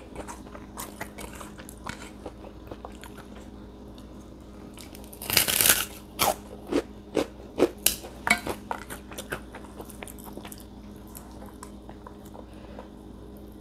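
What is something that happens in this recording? Fingers rustle and crackle through crispy food.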